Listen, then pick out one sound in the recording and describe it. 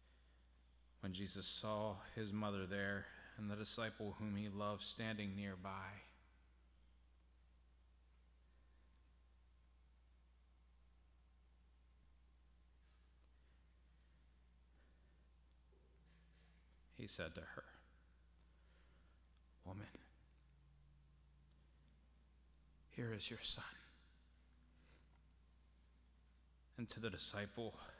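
A man speaks slowly through a microphone in a large echoing hall, with long pauses.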